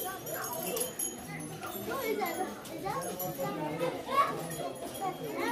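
A crowd of men, women and children chatters nearby outdoors.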